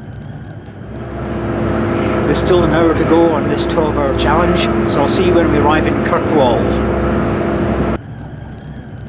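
A middle-aged man talks close to the microphone, outdoors in wind.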